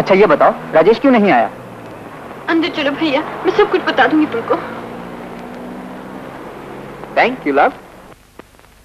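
A man and a woman talk calmly.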